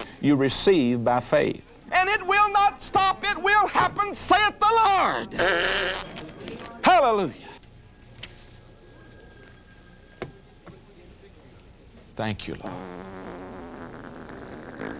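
A middle-aged man speaks with animation through a microphone, close by.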